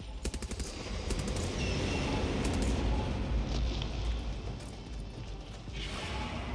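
Thunder rumbles deeply.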